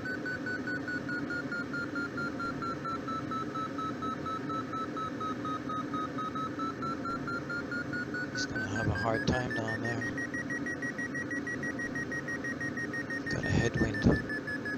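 A glider's variometer sounds a steady tone that slowly falls, then rises in pitch.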